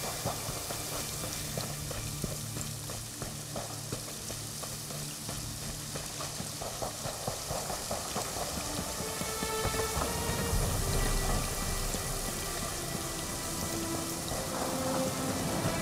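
Footsteps crunch steadily over grass and stone.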